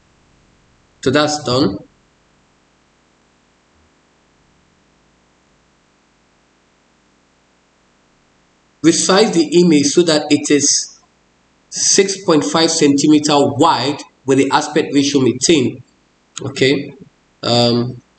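A man speaks calmly and close to a microphone, in bursts with pauses.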